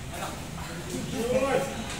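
A man speaks nearby.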